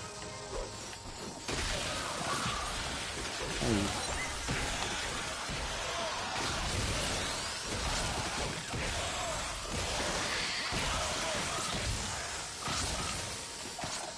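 A glowing energy orb hums and crackles loudly.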